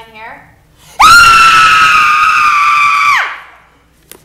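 A young woman sings a long, loud, high note and then breaks off.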